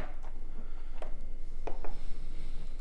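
A small pot knocks down onto a wooden table.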